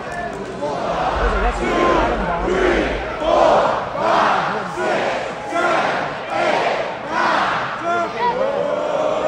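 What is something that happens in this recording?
A crowd chants and claps in rhythm.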